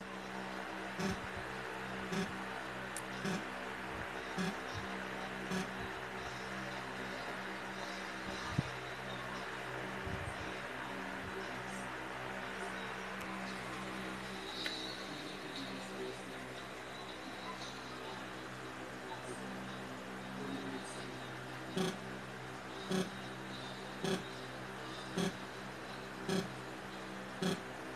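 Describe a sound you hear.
A middle-aged man talks with animation through a television loudspeaker.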